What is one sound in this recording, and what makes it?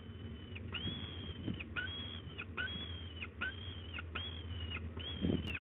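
A falcon calls over and over with long, high, wailing cries.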